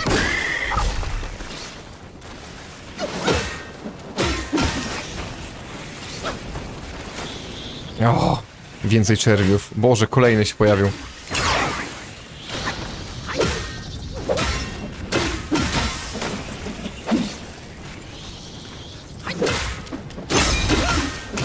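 Sword blows clash and thud in a fight.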